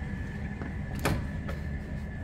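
A door latch clicks.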